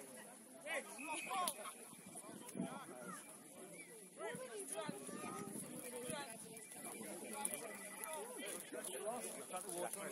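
Several men and boys shout and call out across an open field outdoors.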